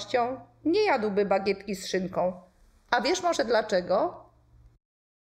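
A woman speaks expressively and close into a microphone, as if reading a story aloud.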